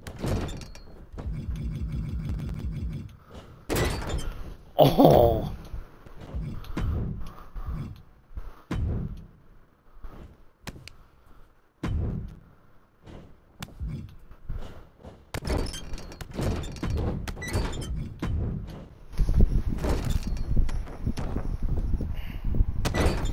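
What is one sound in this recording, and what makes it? Wrestlers' bodies thud and slam onto a ring mat.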